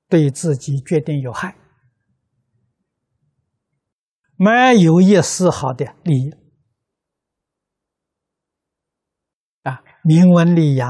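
An elderly man speaks calmly and slowly into a close microphone, pausing between phrases.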